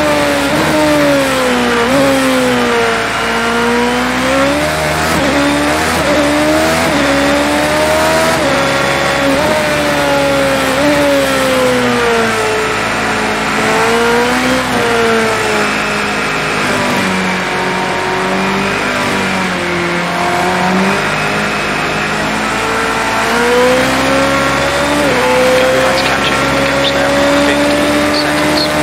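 A racing car engine revs high and drops as gears shift.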